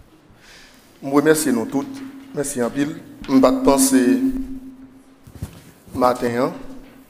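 A man speaks calmly into a microphone in a room with a slight echo.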